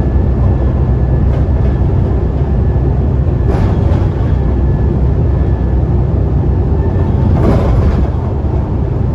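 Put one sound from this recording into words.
A bus engine rumbles steadily from inside the bus as it drives along a road.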